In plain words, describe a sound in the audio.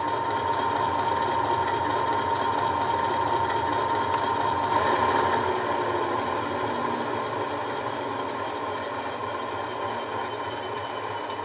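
A model diesel locomotive's engine hums and rumbles steadily, growing a little quieter toward the end.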